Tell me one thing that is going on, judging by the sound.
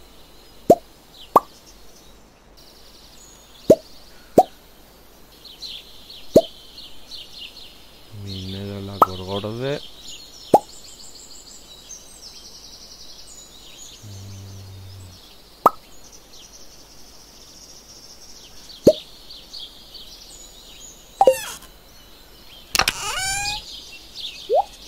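Short electronic pops sound as game items are picked up and dropped.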